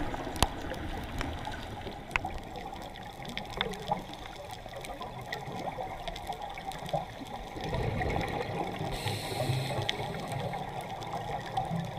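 Muffled underwater noise rumbles and crackles steadily throughout.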